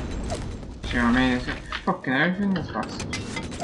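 A young man speaks briefly close to a microphone.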